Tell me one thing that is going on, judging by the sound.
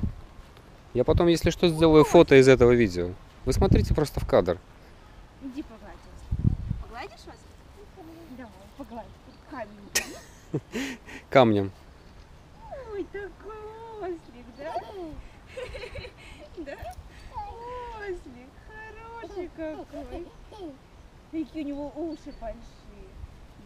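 A young woman talks brightly and playfully, close by.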